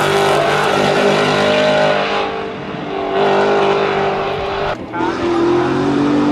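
A race car engine fades into the distance as the car speeds away.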